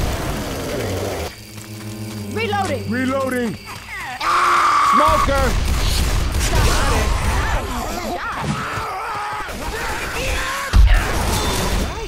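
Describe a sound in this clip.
Heavy melee blows thud and squelch against bodies.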